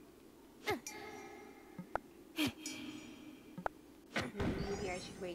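A pickaxe strikes rock with a ringing clang.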